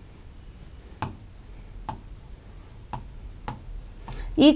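A marker taps on a whiteboard.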